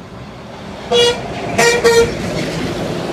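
A truck's air horn blares in several short, loud blasts.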